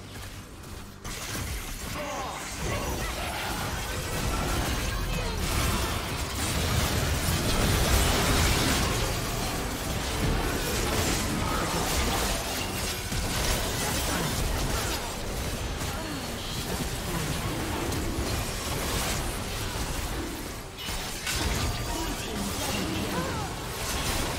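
Game combat sounds of spells and clashing weapons burst and crackle.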